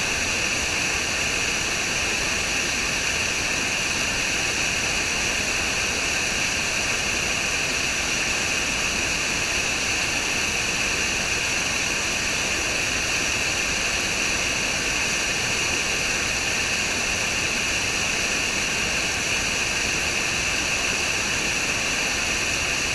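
A small waterfall rushes and splashes steadily over rocks close by.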